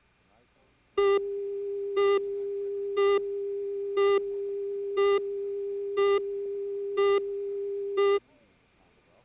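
A steady electronic tone sounds.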